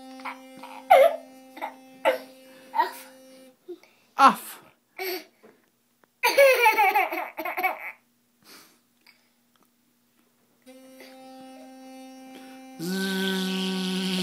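An electric toothbrush buzzes steadily.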